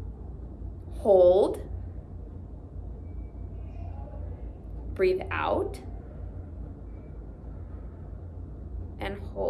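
A young woman speaks short words calmly and close by.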